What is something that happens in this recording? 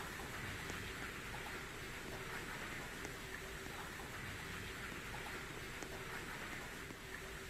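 Car wash brushes whir steadily.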